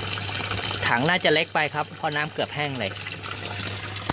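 A stream of water splashes into a tank of water.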